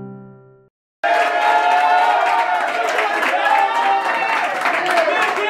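Young men cheer and shout loudly together.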